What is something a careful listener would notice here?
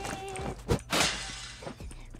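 A door swings shut with a knock.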